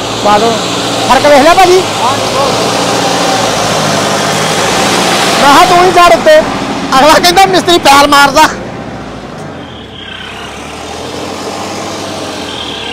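A tractor engine runs with a steady low rumble.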